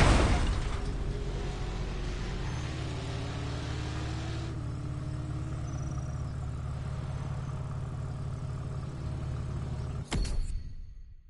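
A car engine idles with a deep, steady rumble.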